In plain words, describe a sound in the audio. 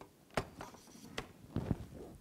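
Cables click as they are plugged in.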